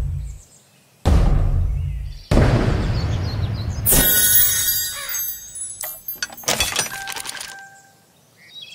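A dramatic game jingle plays with a booming whoosh.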